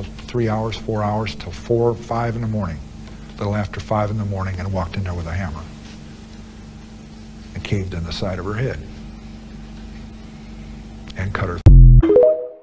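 A middle-aged man speaks calmly and slowly, heard through an old interview recording.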